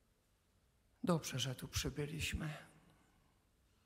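An elderly man speaks calmly through a microphone in an echoing room.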